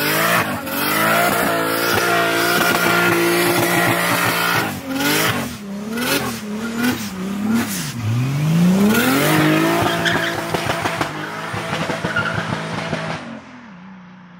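A car engine revs hard and roars.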